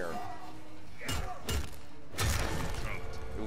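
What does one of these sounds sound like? Heavy blows thud and crunch in a fight.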